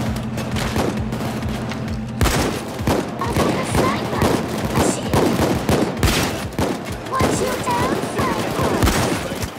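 Rapid gunshots crack and echo through a large concrete space.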